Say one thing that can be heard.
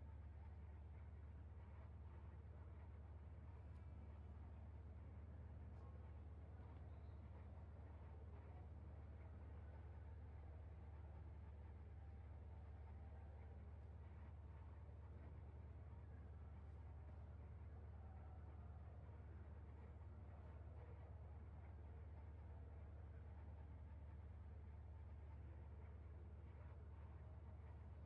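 A racing car engine drones steadily from inside the cockpit.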